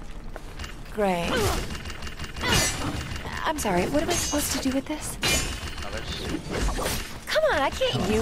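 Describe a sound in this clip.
Sword blows clash and whoosh in quick bursts.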